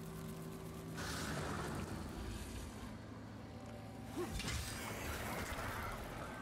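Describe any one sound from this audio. A magic blast bursts with a loud rushing whoosh.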